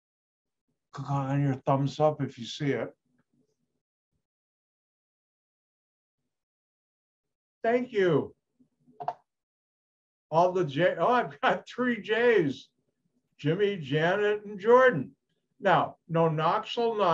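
An elderly man speaks calmly over an online call, in bursts with pauses.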